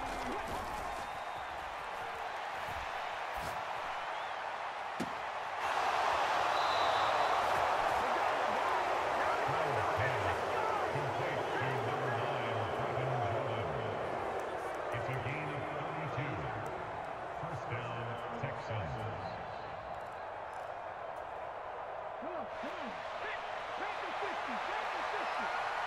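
A large stadium crowd roars and cheers, swelling loudly partway through.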